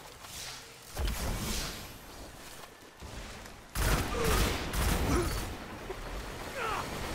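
A gun fires in loud bursts.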